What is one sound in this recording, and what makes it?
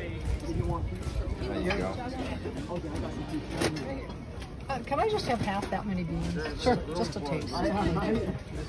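Several people talk in a crowd outdoors.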